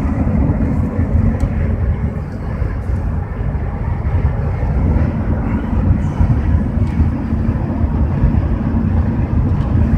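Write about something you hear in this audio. A vehicle engine rumbles steadily inside a moving cab.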